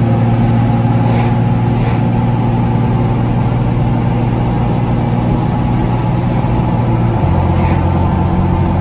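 A car whooshes past in the other direction.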